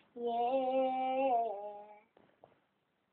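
A young girl sings a sustained note close by.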